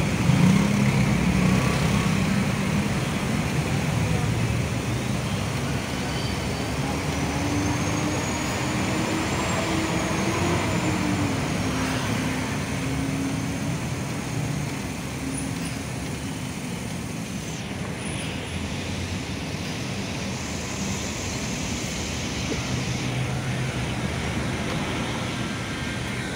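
Traffic rumbles steadily on a busy street outdoors.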